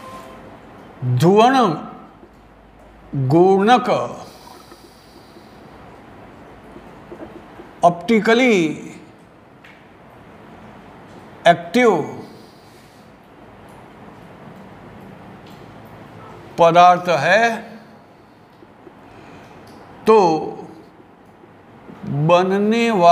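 An elderly man speaks calmly in short phrases, close by.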